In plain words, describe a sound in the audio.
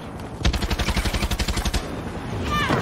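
A gun fires in a rapid burst of loud shots.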